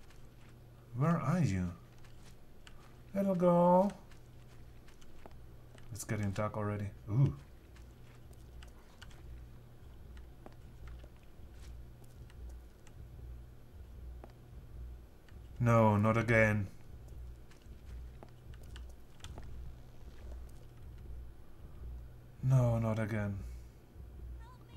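A man speaks calmly in short bursts into a close microphone.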